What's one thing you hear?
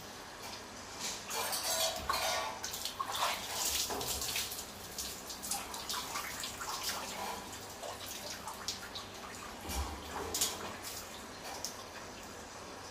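Water splashes and sloshes in a tub.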